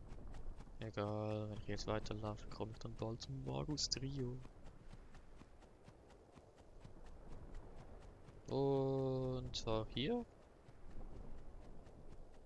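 Quick footsteps patter on dirt.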